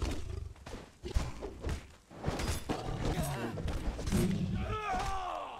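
Swords clash and thud against shields in a fight.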